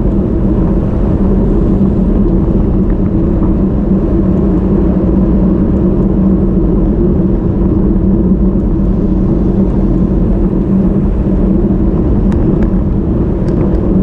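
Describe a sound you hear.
Bicycle tyres hum steadily on the road.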